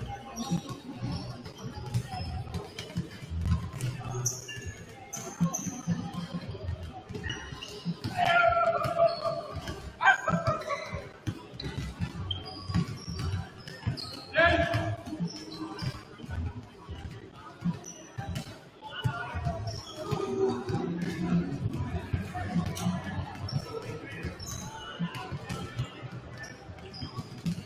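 Basketballs bounce on a hard court, echoing in a large hall.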